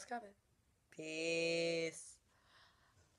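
A young woman sings a long, held note.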